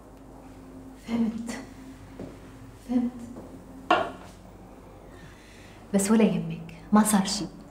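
A woman speaks calmly in short phrases, close by.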